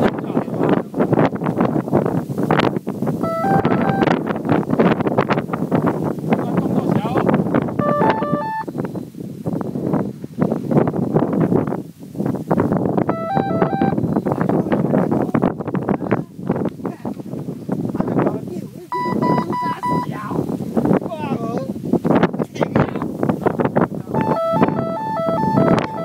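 Wind gusts over an open hillside, buffeting the microphone.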